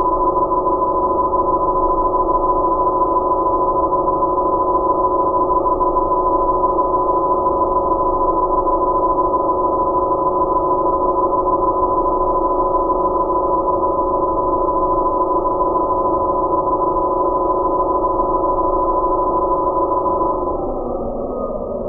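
Small electric motors whine steadily at a high pitch, then wind down.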